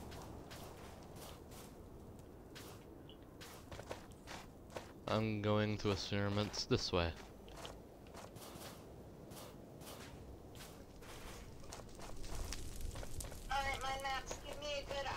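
Footsteps crunch steadily on hard ground.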